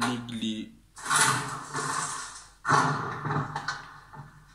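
A heavy wooden door creaks and swings open.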